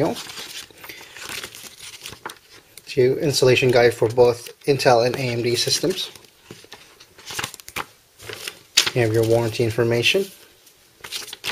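Paper pages of a booklet rustle as they are turned.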